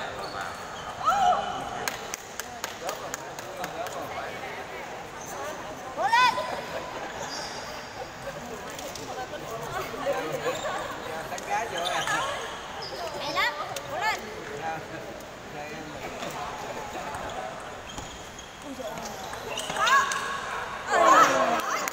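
Sports shoes squeak sharply on a hard floor.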